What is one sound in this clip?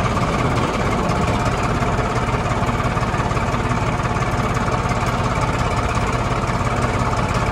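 A plough scrapes and churns through dry soil.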